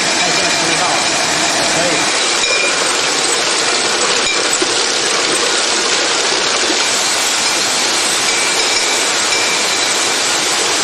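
Bottling machinery clatters and whirs steadily.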